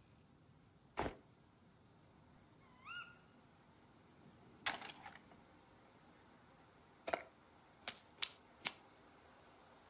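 Short clicks and rustles sound as items are picked up and dropped.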